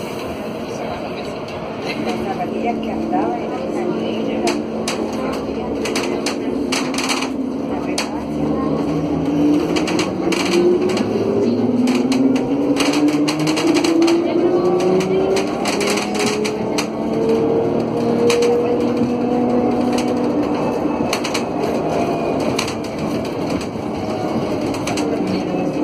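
Loose fittings inside a bus rattle and clatter.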